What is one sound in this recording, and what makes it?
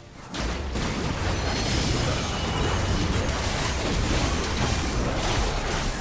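Video game spells and attacks crash, whoosh and clash in a busy fight.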